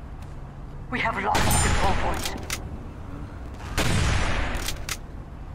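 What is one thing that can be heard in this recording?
A sniper rifle fires twice with loud, booming cracks.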